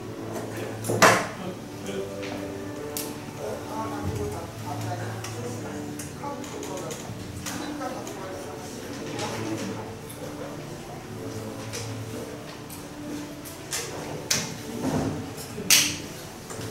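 Hands tap and brush together now and then.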